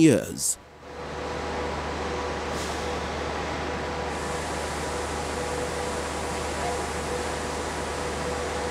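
Factory machinery hums steadily.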